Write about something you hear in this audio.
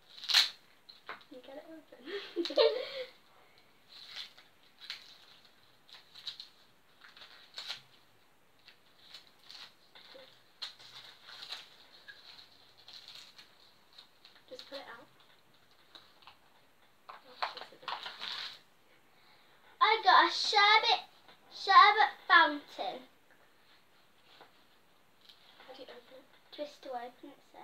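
Two young girls talk and giggle close by.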